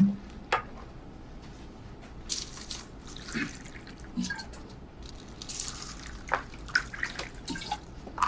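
Hot water pours from a flask into a cup.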